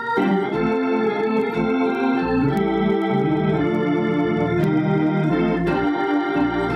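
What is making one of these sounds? An electric organ plays a lively run of sustained chords.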